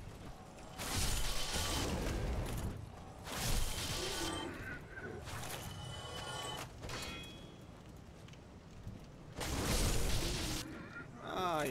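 A sword strikes and slashes in quick heavy blows.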